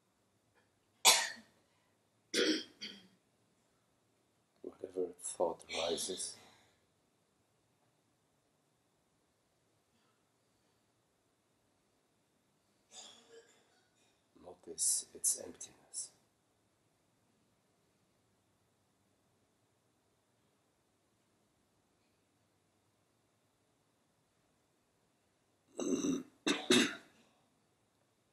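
A middle-aged man speaks calmly in short bursts nearby, with pauses.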